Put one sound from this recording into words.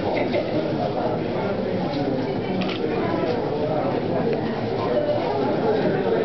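A crowd of men and women chatter in a room with a slight echo.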